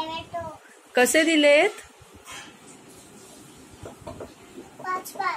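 A little girl speaks in a high, lively voice close by.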